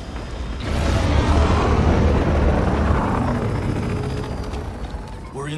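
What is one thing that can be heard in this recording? A helicopter's rotor thumps and roars.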